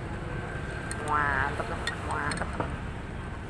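A straw clinks against ice in a glass.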